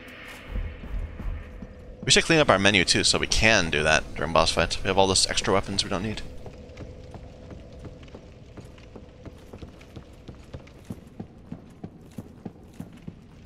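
Footsteps clatter on a stone floor.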